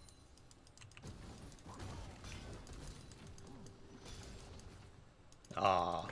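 Game spell effects crackle and whoosh.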